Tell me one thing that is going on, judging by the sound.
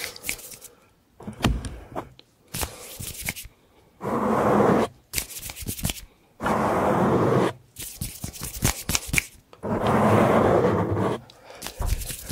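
Fingers tap and scratch right against a microphone.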